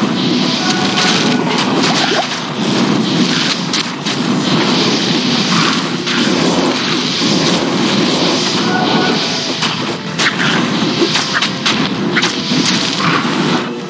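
Skeleton warriors clatter and hack at enemies.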